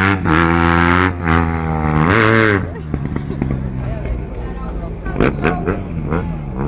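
A motorcycle engine screams at high revs as it races past, then fades into the distance.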